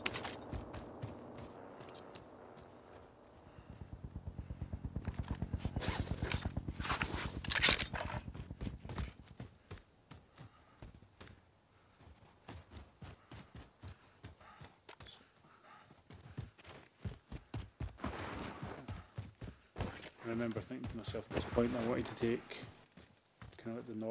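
Footsteps run over the ground.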